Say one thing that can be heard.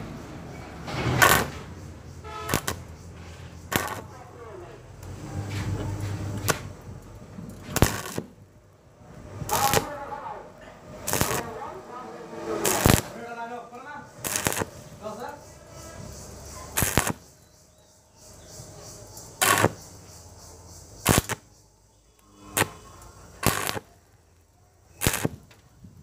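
An arc welder crackles and sizzles in short, repeated bursts.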